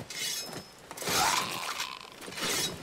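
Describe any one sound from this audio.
A sword rings as it is drawn up.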